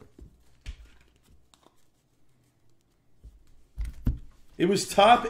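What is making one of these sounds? Cards shuffle and rustle in a hand.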